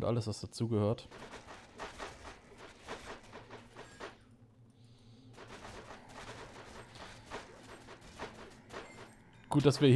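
Fighting sounds and magic effects clash and whoosh in quick bursts.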